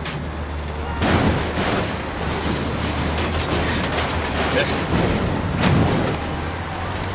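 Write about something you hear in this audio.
A truck scrapes and crashes into another vehicle with loud bangs.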